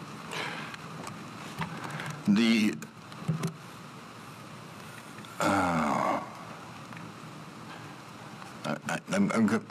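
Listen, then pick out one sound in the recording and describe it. An elderly man speaks haltingly into a microphone.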